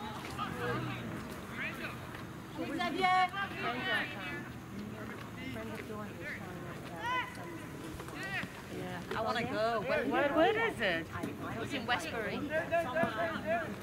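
Young players shout and call out to each other across an open field outdoors.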